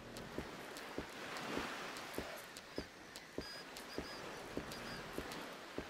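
Footsteps tread on rocky ground.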